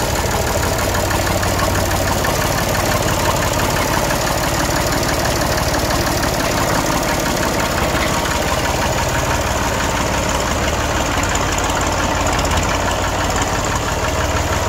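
An old tractor engine chugs steadily close by, revving up as the tractor drives off.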